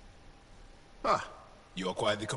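A second man speaks in a low, rough voice, close by.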